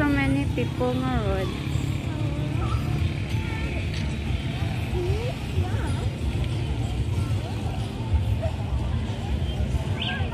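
A crowd of people chatters and calls out in the distance outdoors.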